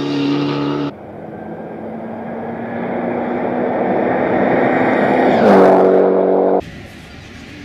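A rally car approaches and roars past up close.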